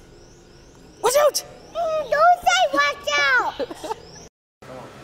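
A young girl talks up close with animation.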